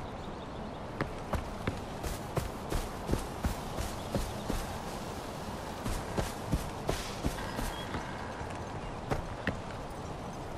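Footsteps tread steadily through grass and over rock.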